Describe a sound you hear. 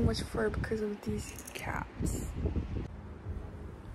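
A young man talks quietly and close by.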